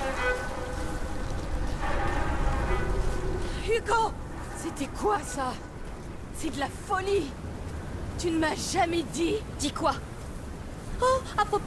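Footsteps rustle through grass.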